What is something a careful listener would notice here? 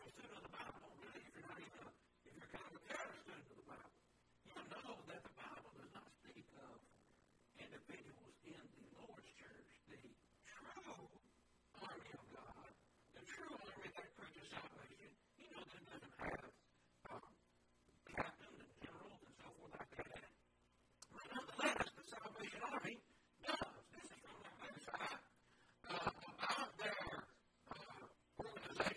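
A middle-aged man lectures with animation into a close microphone.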